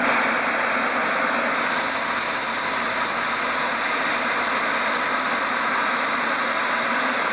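A narrow-gauge steam locomotive hisses out steam.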